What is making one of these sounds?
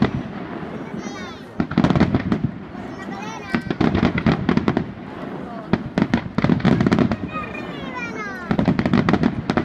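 Fireworks whistle as they shoot upward.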